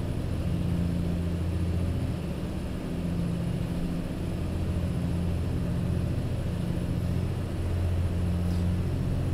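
A heavy truck engine rumbles low and steady.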